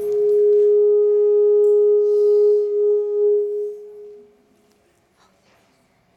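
A hand drum is tapped lightly a few times.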